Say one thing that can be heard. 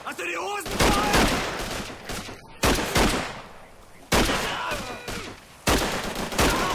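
Gunshots fire loudly in bursts.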